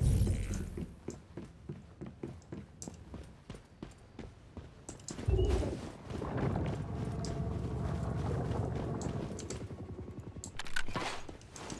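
Footsteps tread steadily over the ground.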